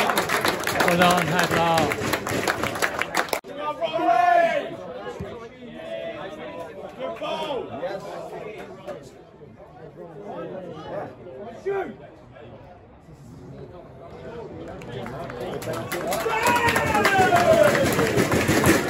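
Men close by call out and chatter.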